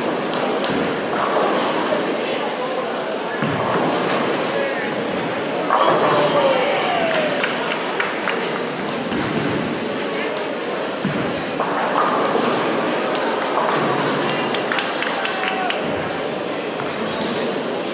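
A crowd of people chatter and cheer around the lanes.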